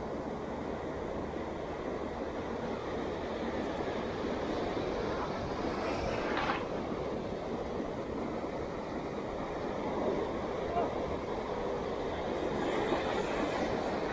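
Waves break and wash up on a beach.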